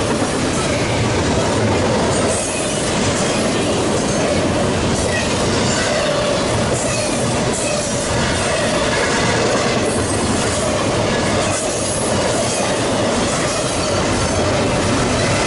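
A long freight train rumbles and clatters past close by.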